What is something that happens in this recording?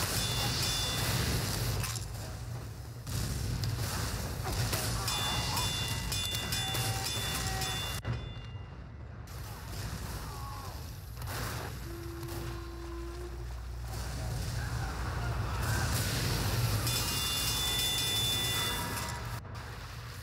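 A flamethrower roars in bursts of fire.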